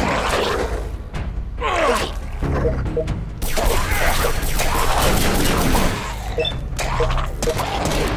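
Gunshots and blows ring out in a fight.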